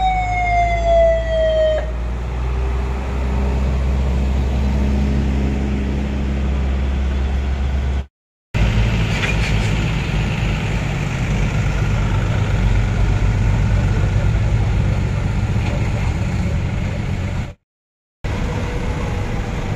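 Heavy truck engines rumble low and steady as a convoy drives past.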